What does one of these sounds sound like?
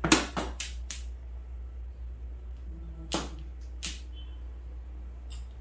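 Mahjong tiles clack sharply against each other and the table.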